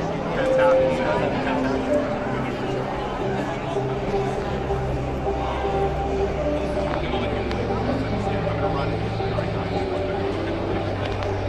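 A crowd of people chatters all around in a busy, echoing hall.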